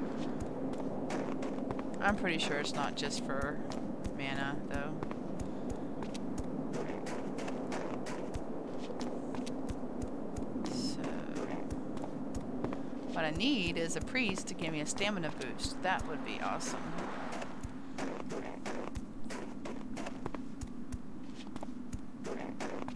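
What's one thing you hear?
Footsteps crunch quickly on snow.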